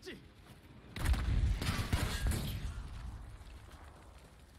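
A large explosion booms close by and rumbles away.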